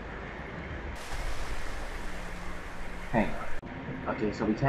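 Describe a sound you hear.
A diver splashes at the water's surface.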